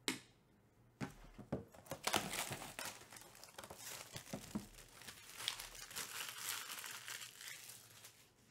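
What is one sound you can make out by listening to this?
Plastic wrap crinkles and rustles as it is torn off a box.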